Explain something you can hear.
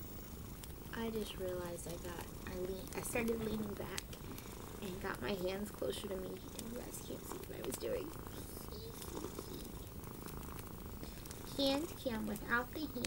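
A young woman talks calmly and cheerfully into a microphone.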